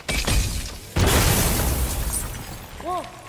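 Crystals shatter with a loud burst.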